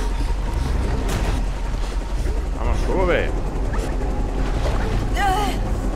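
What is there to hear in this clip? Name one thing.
A man splashes through water.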